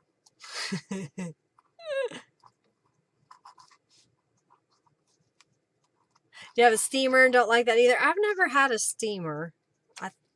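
Paper rustles as hands fold and handle it.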